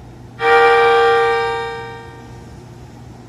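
A train sounds a loud horn close by.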